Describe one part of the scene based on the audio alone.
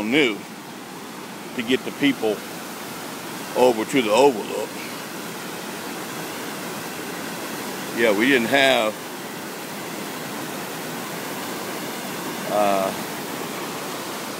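Water rushes steadily over rocks in a waterfall.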